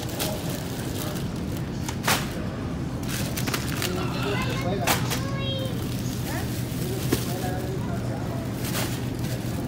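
Packages rustle and knock as they are dropped into a shopping cart.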